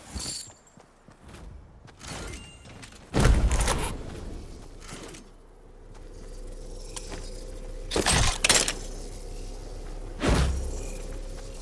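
Game pickup sounds chime as items are collected.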